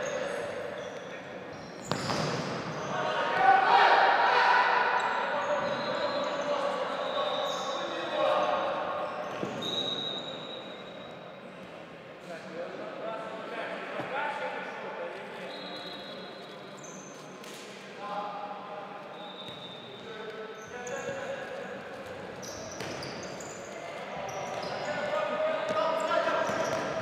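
Players shout to one another across the echoing hall.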